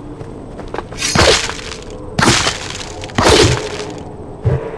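A sword swishes sharply through the air several times.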